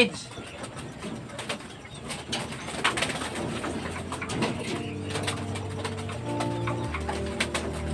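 A wire cage rattles as a man handles it.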